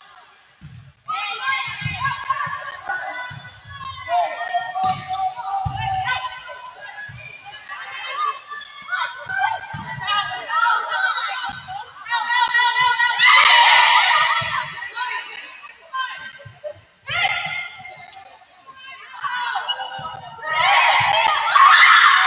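A volleyball is struck with hollow slaps in a large echoing gym.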